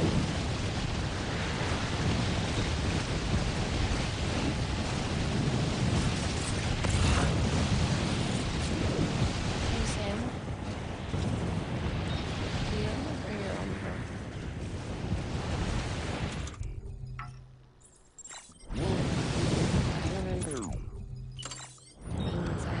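Strong wind roars and gusts outdoors.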